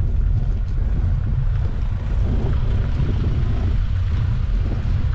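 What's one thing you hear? Wind blows steadily outdoors with a low rumble.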